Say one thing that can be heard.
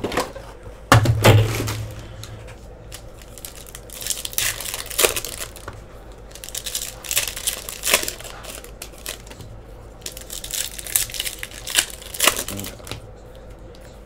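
Foil card packs crinkle and tear open in close hands.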